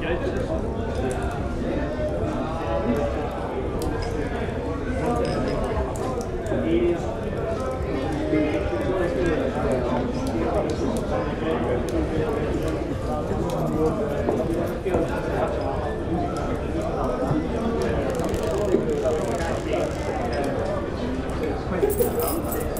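A crowd of men and women chatter and talk over one another in a busy room.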